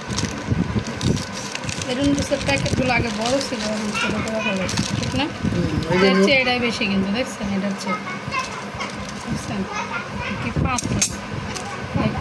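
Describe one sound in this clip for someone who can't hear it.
A plastic wrapper rustles and crinkles.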